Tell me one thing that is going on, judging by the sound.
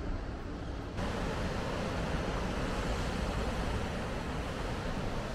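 Waves break and wash over rocks below.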